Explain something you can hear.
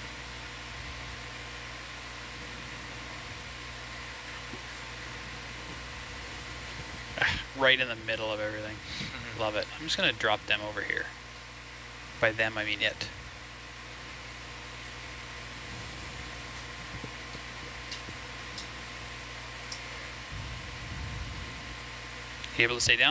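A machine hums steadily underwater.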